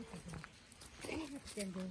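A dog sniffs and rustles through dry leaves.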